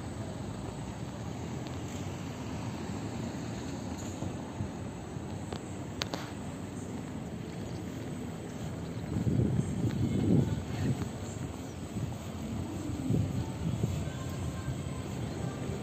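Wind blows outdoors in gusts.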